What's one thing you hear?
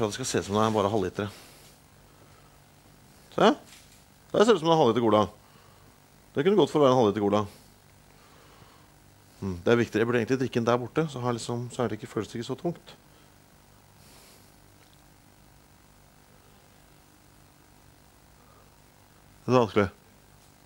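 A young man speaks close by in short bursts, with long pauses.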